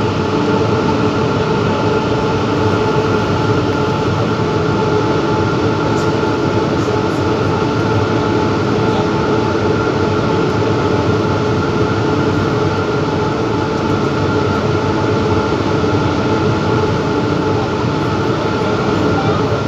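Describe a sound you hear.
Electric traction motors of a metro train whine at a steady pitch.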